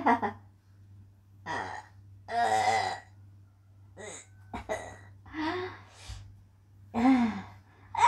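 A young woman whines and moans playfully in short bursts, close by.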